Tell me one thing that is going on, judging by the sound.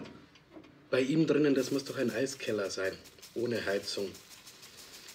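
A man speaks in a low voice nearby.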